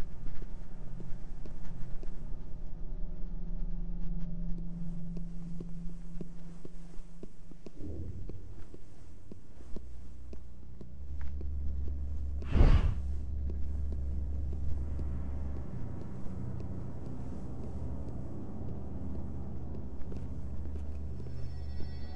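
Soft footsteps tap on a hard floor.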